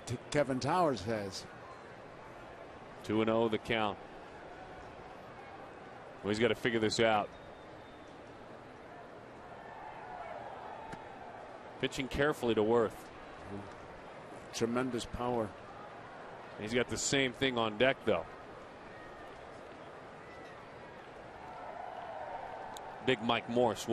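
A large crowd murmurs steadily in an open stadium.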